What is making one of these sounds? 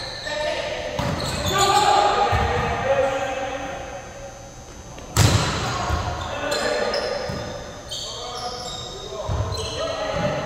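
A volleyball is struck with sharp slaps in a large echoing gym.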